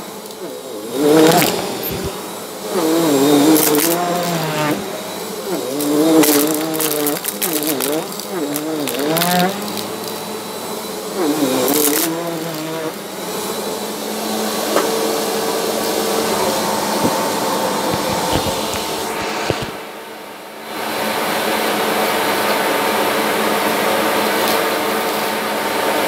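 A vacuum cleaner runs with a steady whirring hum.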